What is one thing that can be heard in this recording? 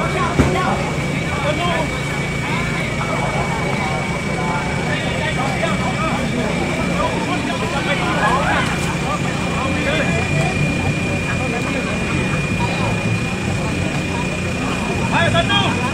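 A crowd of people chatters and calls out nearby outdoors.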